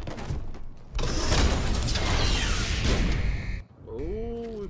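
A heavy metal door slides open with a loud rushing hiss.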